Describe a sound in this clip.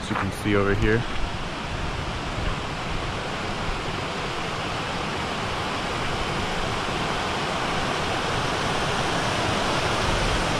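A river rushes steadily and grows louder.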